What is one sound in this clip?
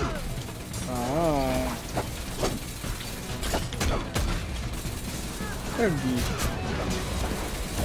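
Fiery blasts whoosh and burst in quick succession.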